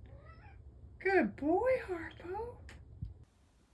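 A cat meows loudly.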